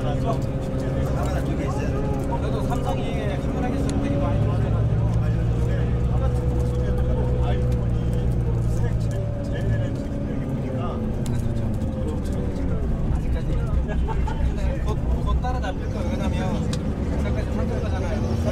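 A vehicle's engine hums steadily as it drives.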